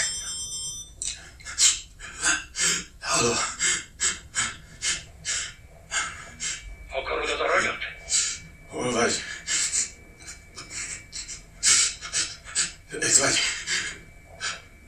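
A man speaks in a low, hushed voice into a phone, close by.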